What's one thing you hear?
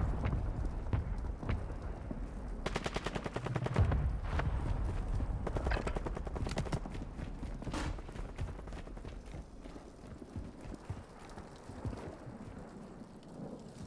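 Footsteps run on concrete.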